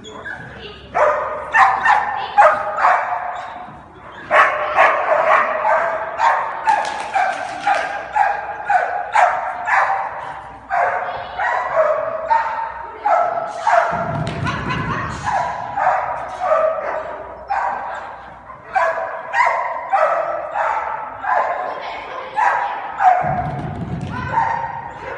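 A dog barks excitedly and repeatedly in a large echoing hall.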